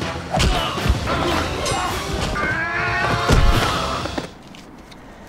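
Men grunt and shout in a fight.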